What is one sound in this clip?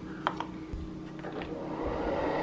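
A button clicks on a coffee machine.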